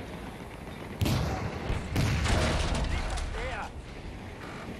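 A loud explosion booms and crackles with debris.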